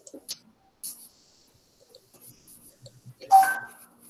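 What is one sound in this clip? A marker eraser wipes across a whiteboard.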